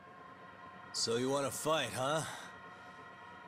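A young man asks a taunting question.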